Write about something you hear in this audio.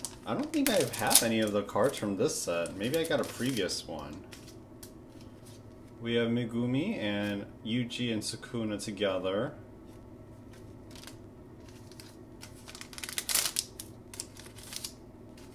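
A foil wrapper crinkles as hands tear it open.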